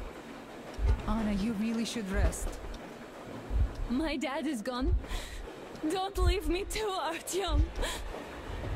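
A young woman speaks in an upset, emotional voice.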